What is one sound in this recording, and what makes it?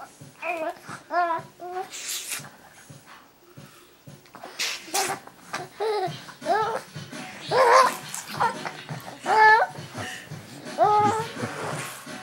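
A baby coos and giggles happily up close.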